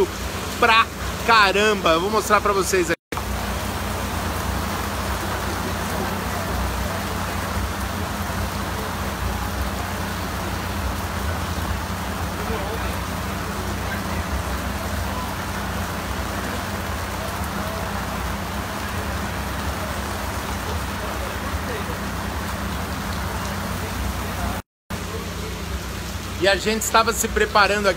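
Heavy rain pours down outdoors.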